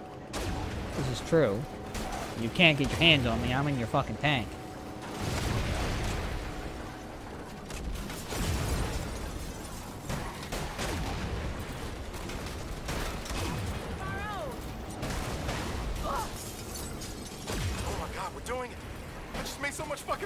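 Explosions boom and crackle.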